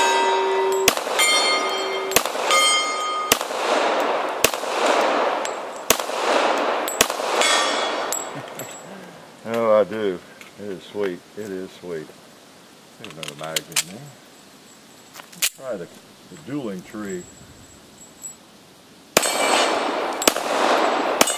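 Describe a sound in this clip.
A handgun fires sharp shots in quick succession outdoors.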